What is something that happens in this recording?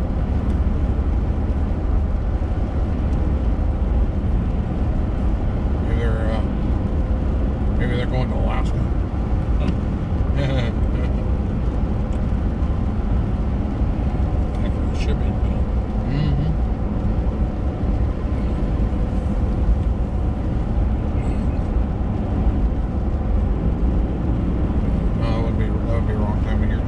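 A car engine hums and tyres roll steadily over a wet road.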